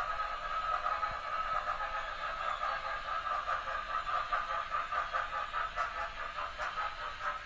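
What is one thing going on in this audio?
An HO-scale model train rolls along its track.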